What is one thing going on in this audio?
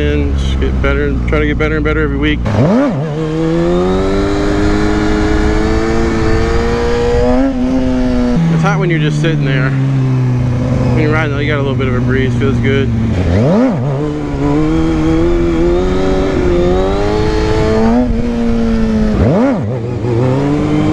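A motorcycle engine revs and roars close by, rising and falling in pitch.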